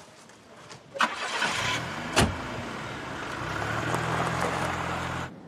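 A car engine starts and idles.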